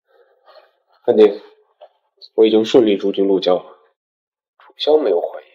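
A young man speaks into a phone, close by.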